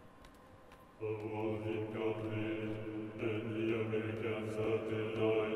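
A choir sings loudly and together in a large echoing hall.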